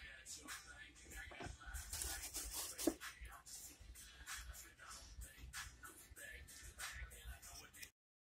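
A cloth rubs and wipes across a wooden board.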